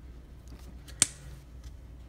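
A small plastic toy part clicks into place.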